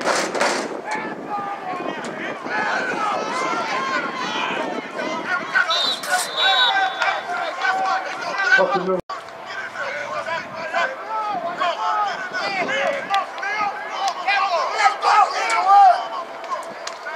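A crowd of spectators talks and calls out nearby, outdoors.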